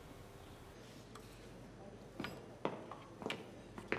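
Game pieces click on a wooden board.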